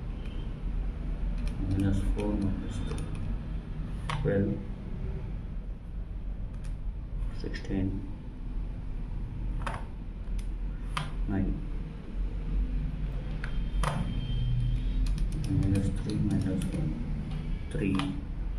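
Buttons on a scientific calculator click as they are pressed.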